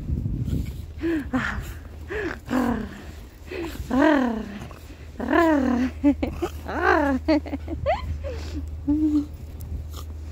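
A dog whines and yelps in high, sliding cries.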